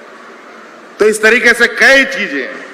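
A man speaks loudly and forcefully into a microphone over loudspeakers.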